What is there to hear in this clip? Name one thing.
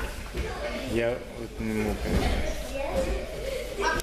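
A body thuds onto a mat.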